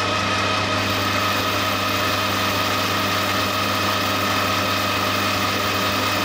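A cutting tool scrapes and hisses against spinning metal.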